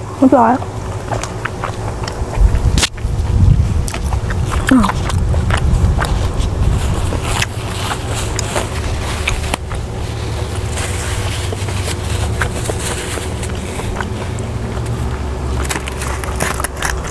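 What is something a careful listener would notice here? A young woman chews food close to a microphone, with soft wet crunching.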